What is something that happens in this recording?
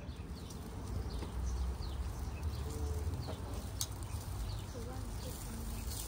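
Metal utensils scrape and clink on a grill.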